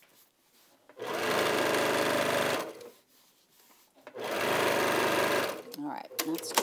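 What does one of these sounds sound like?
A sewing machine runs in two short, steady bursts.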